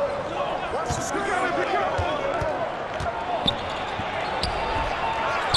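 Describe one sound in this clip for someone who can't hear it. A crowd murmurs in a large arena.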